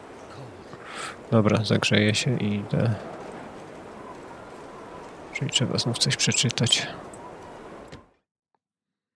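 Wind howls steadily in a blizzard.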